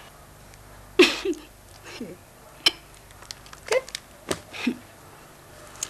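A woman makes short, close exclamations.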